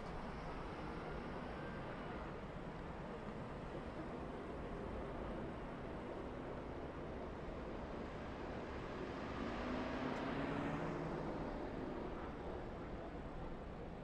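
Race car engines roar past in the distance.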